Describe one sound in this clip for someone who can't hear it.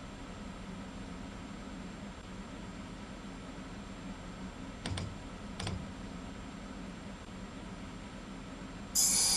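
A train engine hums steadily at idle.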